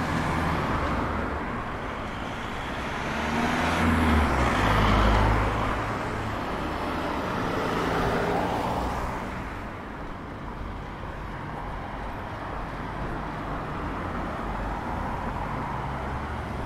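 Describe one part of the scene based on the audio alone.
Street traffic rumbles and hisses past outdoors.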